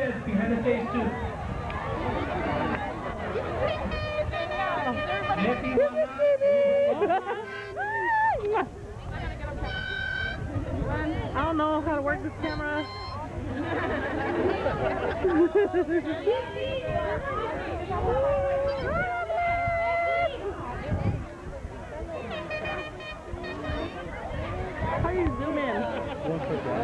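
Men and women talk and call out close by with animation.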